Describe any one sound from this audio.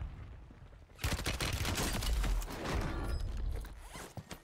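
Gunshots fire rapidly in a game.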